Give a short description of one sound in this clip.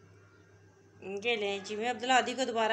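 A woman speaks cheerfully nearby.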